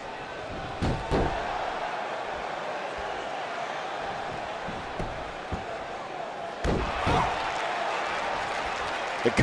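An arena crowd murmurs and cheers throughout.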